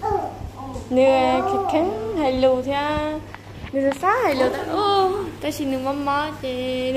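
A young child babbles and whines.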